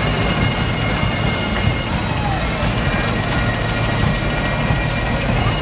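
A fire engine's motor rumbles as it rolls slowly past.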